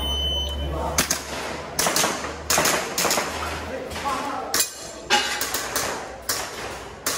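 Pistol shots ring out rapidly in an echoing indoor hall.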